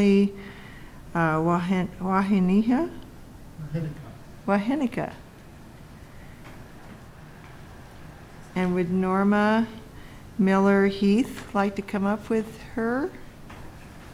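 A middle-aged woman speaks calmly into a microphone.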